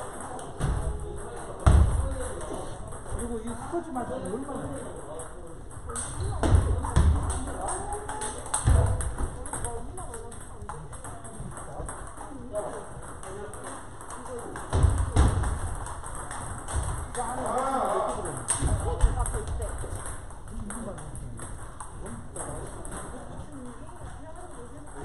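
Table tennis balls click against paddles and tables in a large echoing hall.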